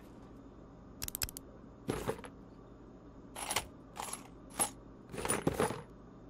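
Short menu clicks and chimes sound.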